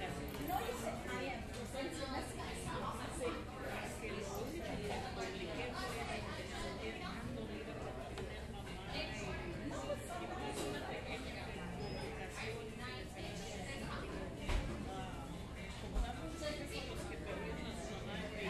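A crowd of men and women chatters indistinctly nearby.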